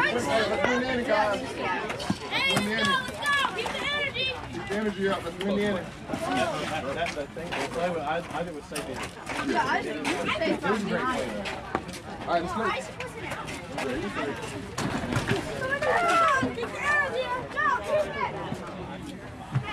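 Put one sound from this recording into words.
A crowd of children and adults chatter and call out outdoors nearby.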